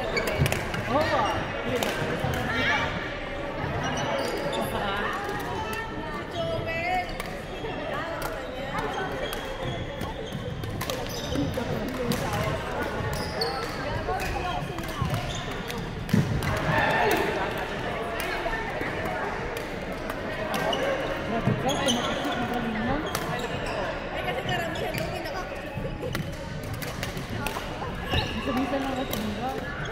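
Several women talk and call out in a large echoing hall.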